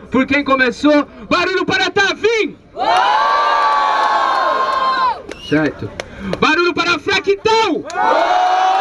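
A young man raps rapidly into a microphone over a loudspeaker.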